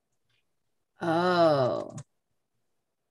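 A man laughs loudly through a microphone.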